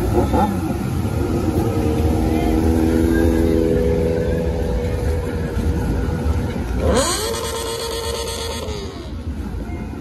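A quad bike engine revs and idles nearby.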